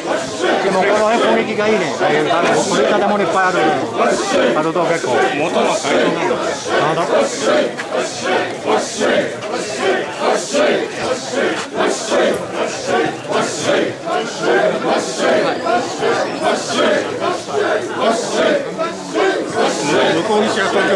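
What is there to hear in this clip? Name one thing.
Bells on a portable shrine jingle as it sways.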